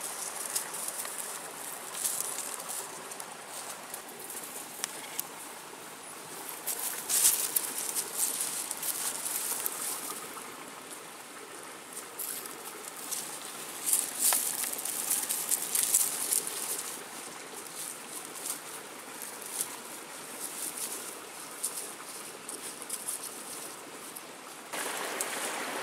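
Dogs rustle through dry leaves and grass in undergrowth.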